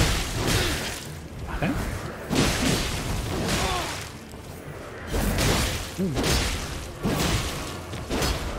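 Sword blows clash and whoosh in quick bursts.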